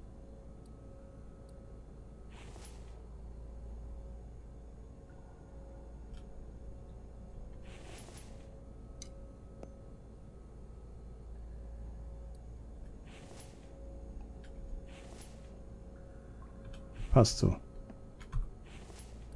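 A machine hums steadily and low.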